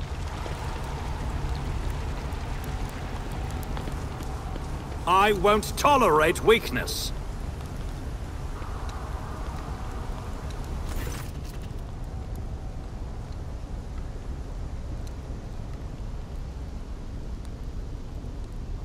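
A fire roars with a low, steady rumble.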